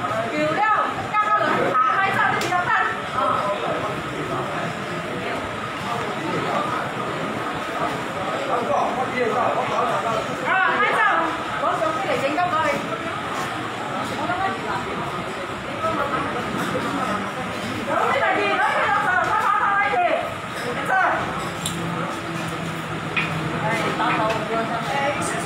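A woman shouts angrily nearby.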